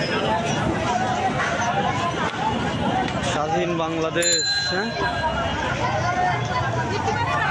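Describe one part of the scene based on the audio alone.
A crowd of men chatters and shouts close by on a busy street.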